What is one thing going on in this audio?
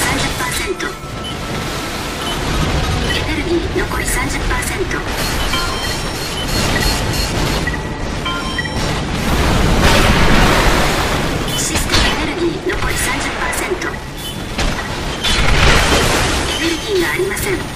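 Gunfire and explosions boom in quick bursts.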